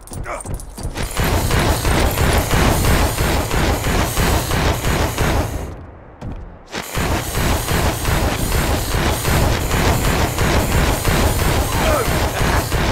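Energy blasts crackle and fizz repeatedly.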